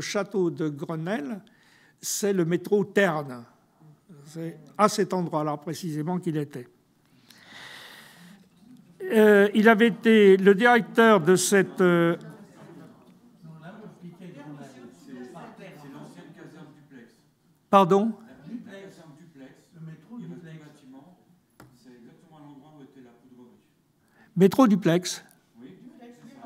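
An elderly man speaks with emphasis into a microphone.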